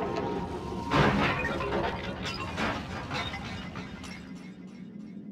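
Machine parts crash and clatter apart.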